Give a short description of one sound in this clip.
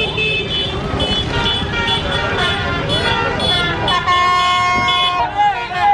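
Car horns honk repeatedly.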